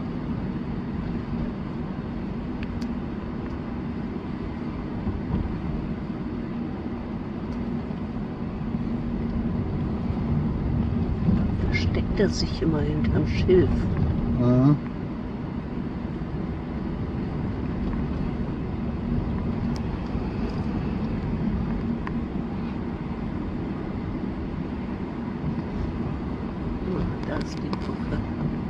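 Inside a moving car, tyres and engine rumble on a paved road.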